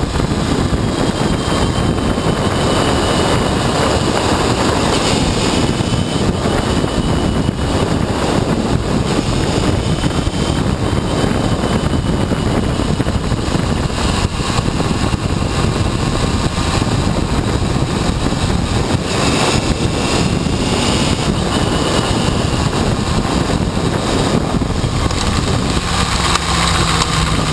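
A motorcycle engine roars steadily up close as the bike rides along.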